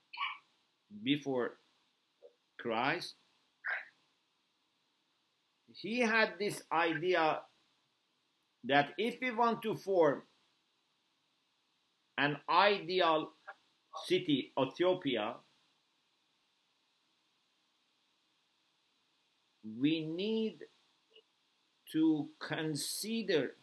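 A middle-aged man speaks calmly and thoughtfully into a close microphone, with long pauses.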